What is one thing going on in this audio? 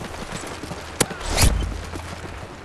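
Sharp gunshots crack close by.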